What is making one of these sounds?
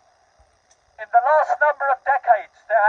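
An elderly man speaks loudly through a megaphone, heard close by.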